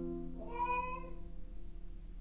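A guitar plays a few ringing notes.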